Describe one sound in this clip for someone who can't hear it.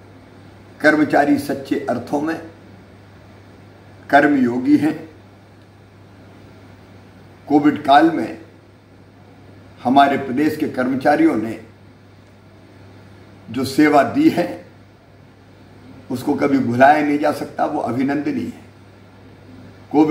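A middle-aged man speaks calmly into a close microphone, in short phrases with pauses.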